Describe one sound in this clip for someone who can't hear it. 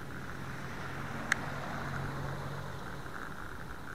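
A pickup truck drives by close by.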